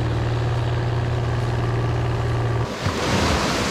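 A motorboat engine hums across open water.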